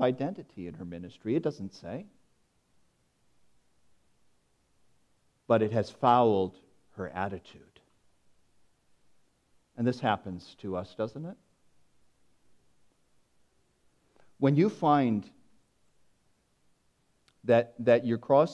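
A man speaks slowly and deliberately into a microphone, with pauses between phrases.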